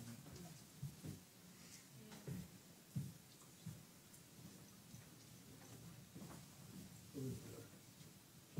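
Footsteps thud on a carpeted floor.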